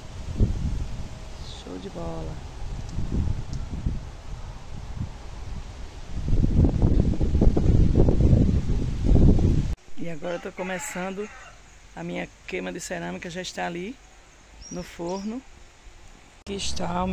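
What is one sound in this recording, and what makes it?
A middle-aged woman talks calmly close to a phone microphone.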